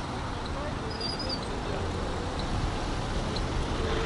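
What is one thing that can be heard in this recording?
A scooter engine buzzes past.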